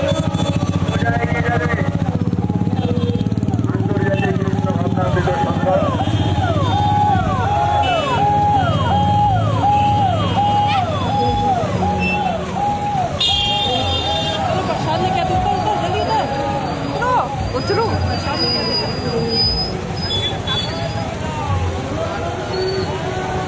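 A large crowd talks outdoors.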